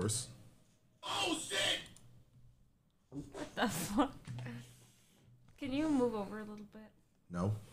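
A young woman talks and exclaims nearby.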